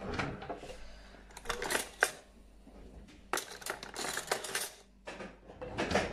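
Metal cutlery rattles and clinks in a drawer.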